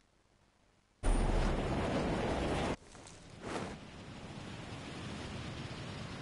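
Wind rushes loudly past in a fast freefall.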